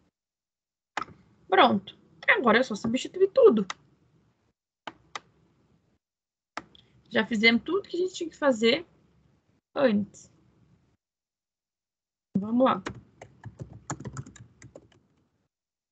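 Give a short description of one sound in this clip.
A woman talks calmly over an online call, in bursts with pauses.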